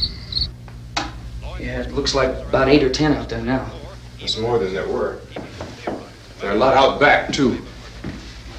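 A young man speaks in reply.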